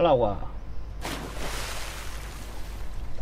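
Water splashes and churns as a body plunges in.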